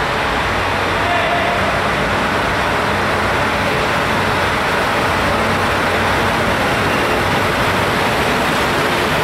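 A diesel locomotive engine rumbles steadily as it rolls slowly closer.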